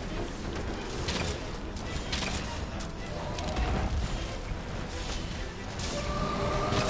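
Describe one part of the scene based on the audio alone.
A large beast rumbles and thrashes.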